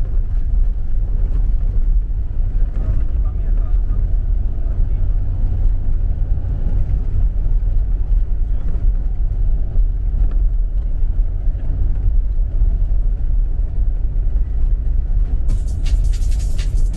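A car engine rumbles steadily inside the cabin.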